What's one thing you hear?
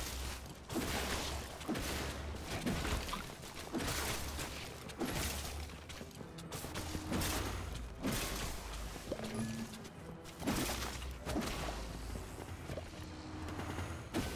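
Weapons clash and strike creatures in rapid bursts.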